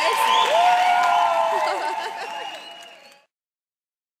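A boy shouts excitedly close by.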